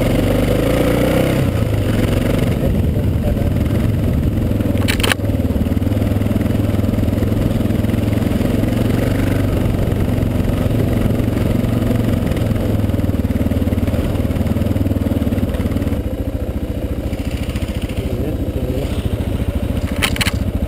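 A motorcycle engine roars steadily close by as it rides along.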